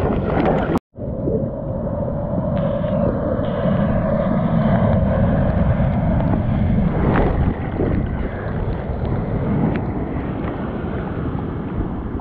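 A wave breaks and rumbles nearby.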